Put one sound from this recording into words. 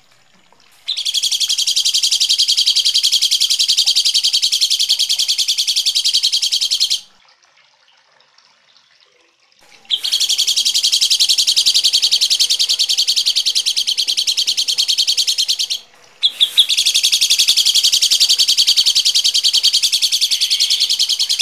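A small bird chatters harshly and rapidly, close by, in long bursts.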